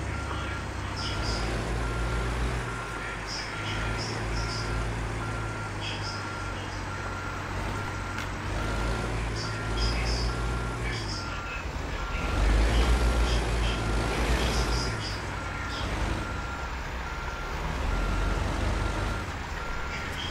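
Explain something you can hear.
A truck's indicator ticks in a steady rhythm.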